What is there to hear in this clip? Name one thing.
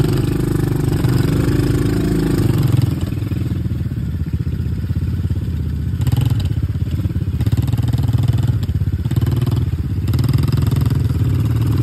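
A small quad bike engine rumbles steadily nearby.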